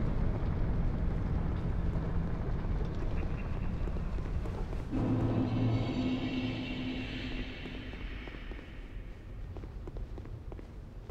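Armoured footsteps thud on stone.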